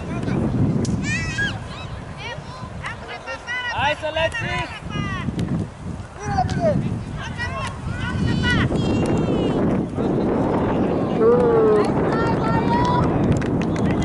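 Young girls shout to each other on an open field.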